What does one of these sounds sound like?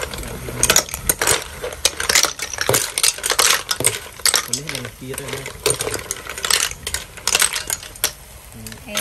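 Snail shells clatter as they are poured into a pot.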